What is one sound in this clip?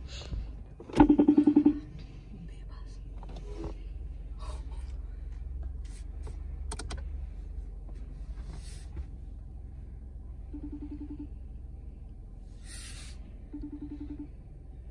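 A car horn gives short beeps.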